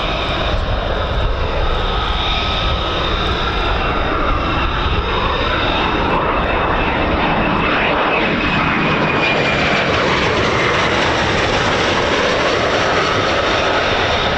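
A jet engine whines, its pitch shifting as the jet hovers and passes.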